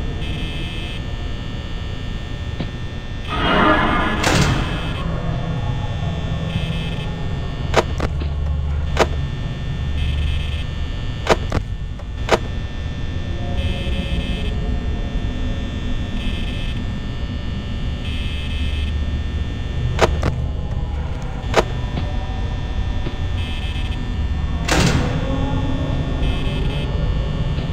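A desk fan whirs steadily.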